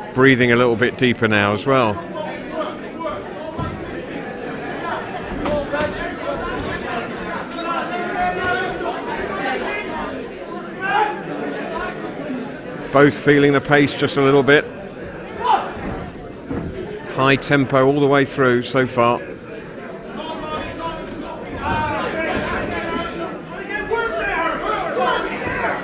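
A crowd murmurs throughout.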